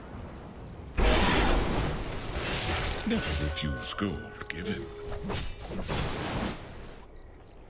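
Magic blasts and weapon clashes crackle in a game battle.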